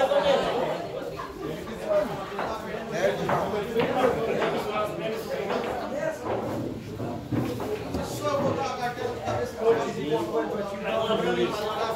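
Pool balls clack together.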